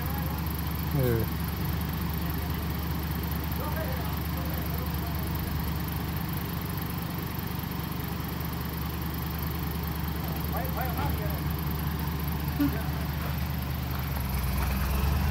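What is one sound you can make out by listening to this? A truck's diesel engine idles with a low, steady rumble close by.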